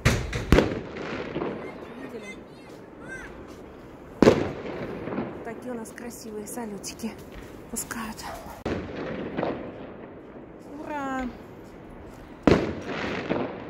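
Fireworks bang loudly outdoors, echoing off buildings.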